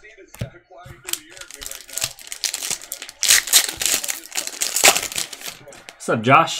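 Hands tear open a foil card pack wrapper with a crinkling rustle.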